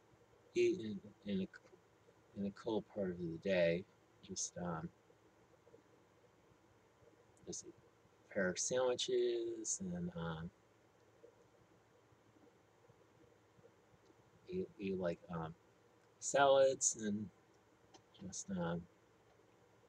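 An older man speaks calmly, with pauses, close to a microphone.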